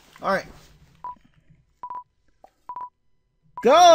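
Short electronic beeps mark a video game countdown.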